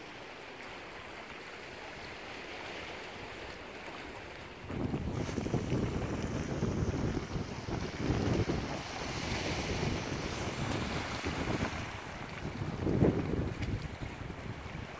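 Small waves lap gently against rocks along the shore.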